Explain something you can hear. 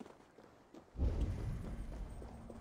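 A heavy thud lands on rock.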